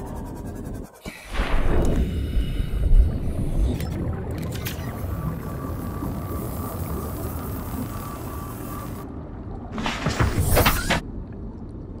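Muffled underwater rumbling surrounds the scene.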